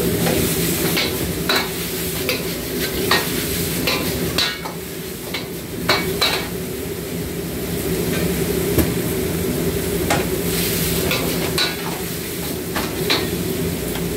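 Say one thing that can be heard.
A metal ladle clanks against a wok.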